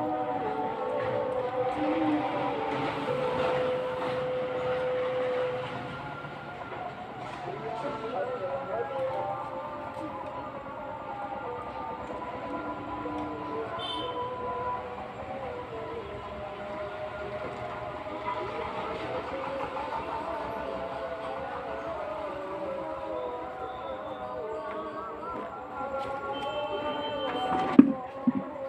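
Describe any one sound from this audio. Pigeons coo steadily nearby.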